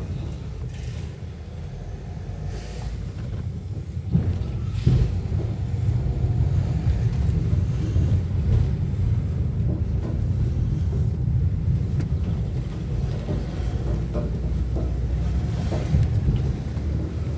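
Tyres rumble over rough tarmac and gravel.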